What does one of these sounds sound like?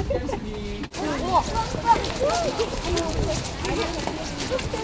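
Young children chatter and call out excitedly outdoors.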